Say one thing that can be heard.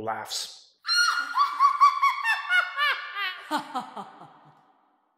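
A synthesized voice sings short, swooping notes that rise and fall in quick succession.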